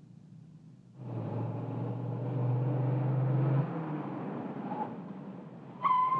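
A car engine rumbles as a car drives up.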